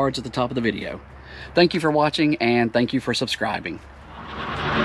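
A middle-aged man talks calmly and close up to the microphone.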